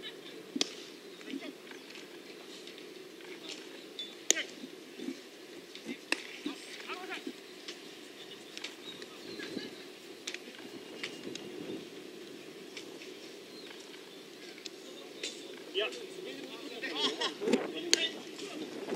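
A baseball smacks sharply into a leather glove.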